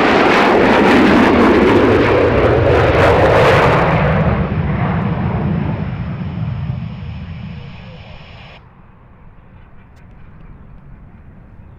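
A jet engine roars loudly overhead and then fades into the distance.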